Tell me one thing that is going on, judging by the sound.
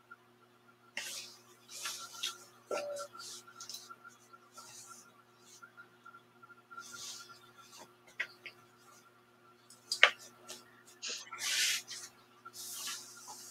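Cloth rustles as hands handle it.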